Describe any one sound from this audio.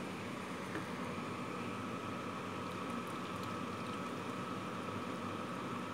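Cooked pasta slides into a pot of sauce.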